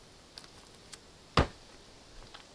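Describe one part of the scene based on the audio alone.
A man lands with a thud on soft ground.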